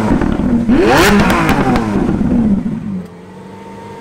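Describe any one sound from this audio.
A sports car engine revs loudly and roars, then drops back.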